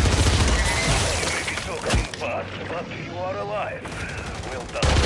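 A man talks casually into a microphone.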